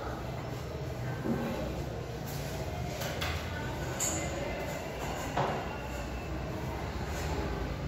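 A sponge wipes across a chalkboard with a soft rubbing.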